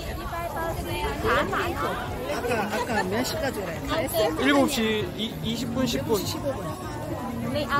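A young woman speaks close by in a casual tone.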